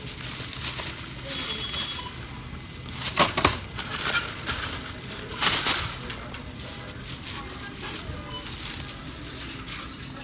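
Plastic grocery bags rustle and crinkle as they are handled.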